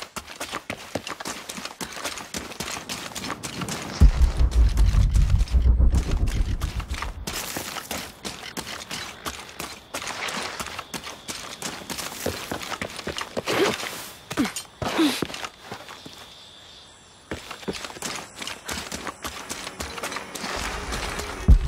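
Footsteps crunch on dirt and grass.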